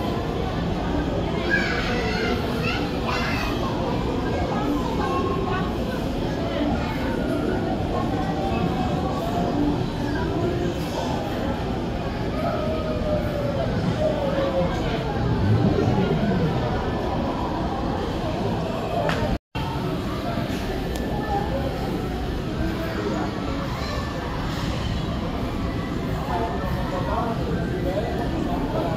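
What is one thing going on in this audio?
Children chatter and shout nearby.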